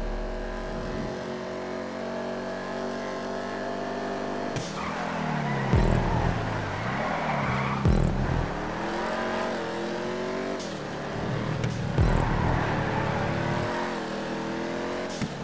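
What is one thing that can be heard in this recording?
A race car engine roars at high revs.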